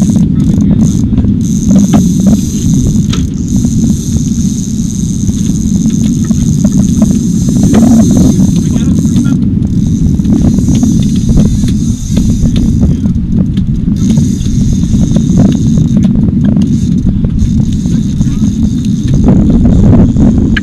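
A fishing reel clicks and whirs.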